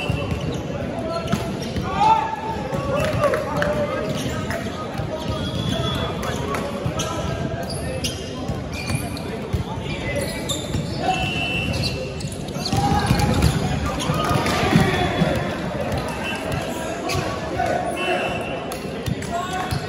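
A volleyball is struck by hand.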